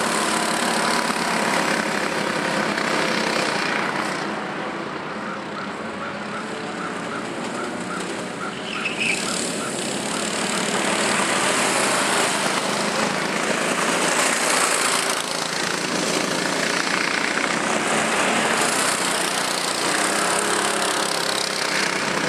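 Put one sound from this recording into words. Go-kart engines buzz and whine loudly as karts race around a track.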